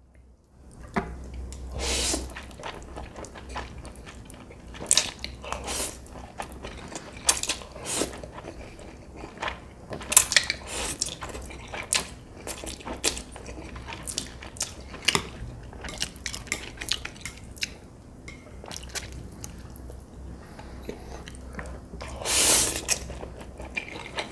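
A man chews food wetly, close to the microphone.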